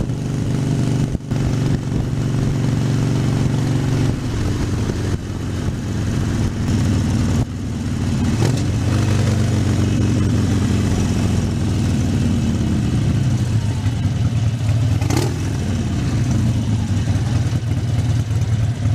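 A motorcycle engine rumbles steadily close by, its pitch rising and falling with the throttle.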